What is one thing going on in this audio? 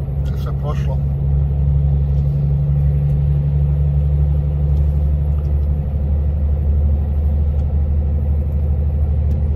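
A truck's engine drones steadily at speed.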